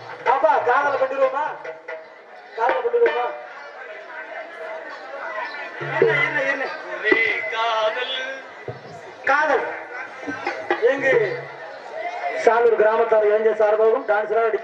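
A young man speaks loudly and animatedly into a microphone over a loudspeaker.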